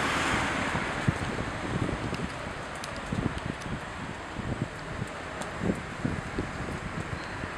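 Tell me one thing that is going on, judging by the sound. Footsteps approach on a pavement.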